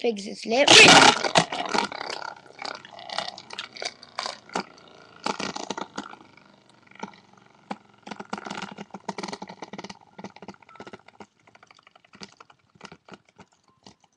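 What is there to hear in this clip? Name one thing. A toy spinning top clatters against the walls of a plastic tub.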